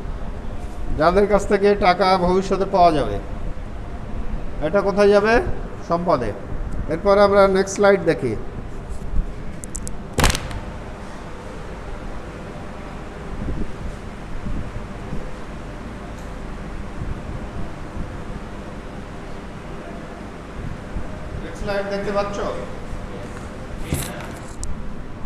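A man speaks loudly in an echoing room.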